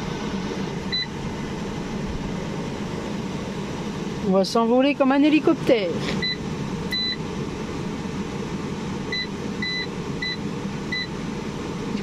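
An electronic device gives short, high beeps several times.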